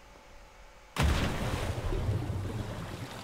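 A body splashes heavily into water.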